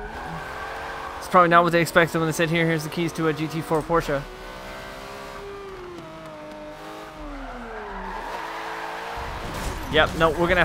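A racing car engine hums and its pitch slowly drops.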